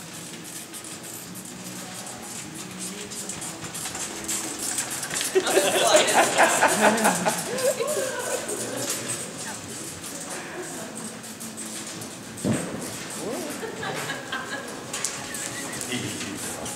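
Hooves thud softly on loose dirt as a pony pulls a cart.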